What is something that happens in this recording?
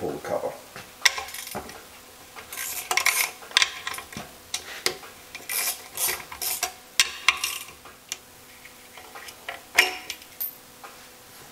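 A socket wrench ratchets with quick metallic clicks.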